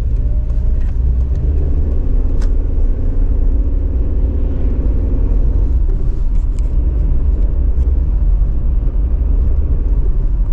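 Tyres rumble on an asphalt road.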